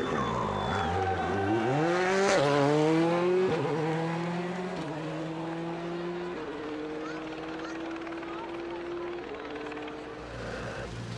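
A rally car engine approaches and revs up the road.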